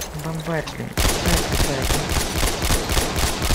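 A rifle fires rapid shots in quick succession.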